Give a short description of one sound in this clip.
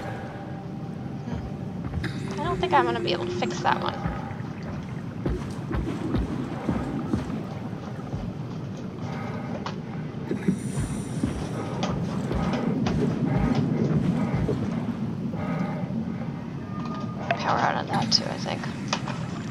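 A low underwater rumble drones steadily throughout.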